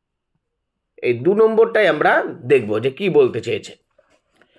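A man speaks clearly and close to a microphone, as if reading aloud.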